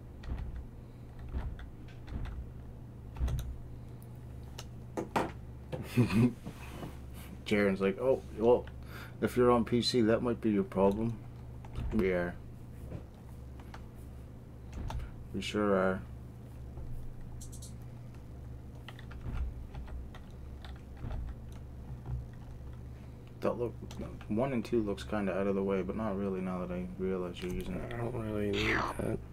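Keyboard keys click now and then.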